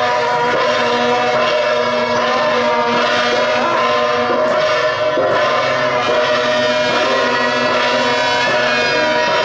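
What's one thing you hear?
Gongs and cymbals clash loudly in a steady rhythm outdoors.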